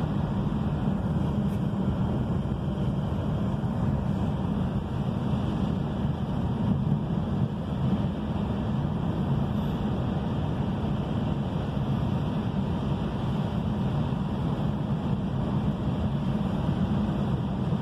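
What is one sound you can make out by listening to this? A car engine hums steadily from inside the vehicle.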